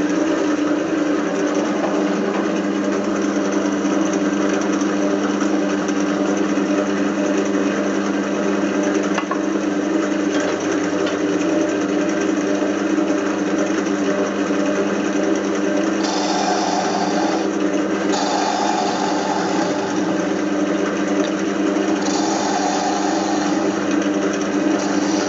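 A lathe motor hums steadily.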